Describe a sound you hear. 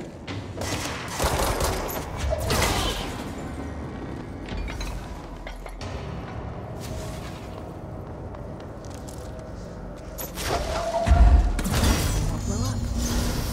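Objects crash and shatter as they are thrown.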